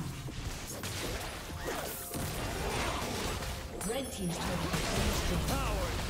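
Spell blasts and magic impacts crackle and whoosh in a video game battle.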